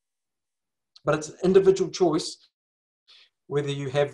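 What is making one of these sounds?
An older man speaks calmly over an online call.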